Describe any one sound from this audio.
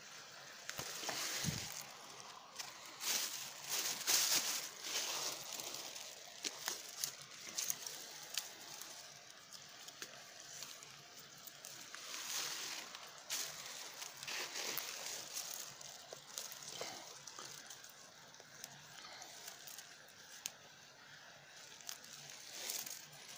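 Dry grass rustles and crackles as a hand pushes through it.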